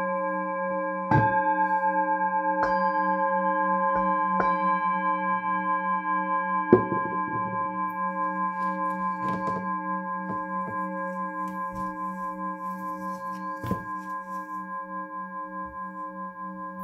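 A singing bowl rings with a steady, pulsing hum that slowly fades.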